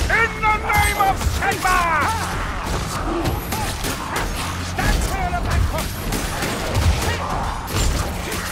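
Creatures snarl and shriek in pain.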